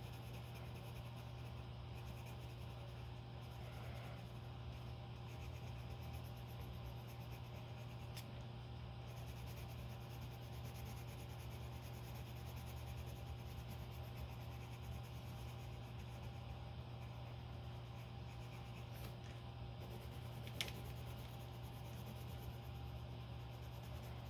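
A coloured pencil scratches softly on paper.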